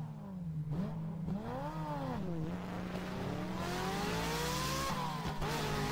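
A car engine hums and revs up and down as it accelerates.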